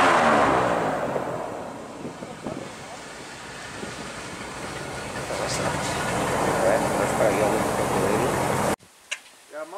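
An airboat engine roars loudly nearby.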